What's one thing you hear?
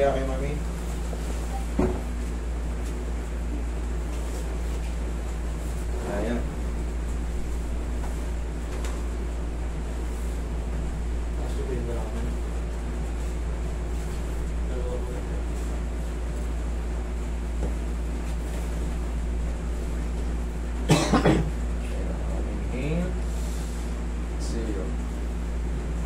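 A man speaks briefly and quietly nearby.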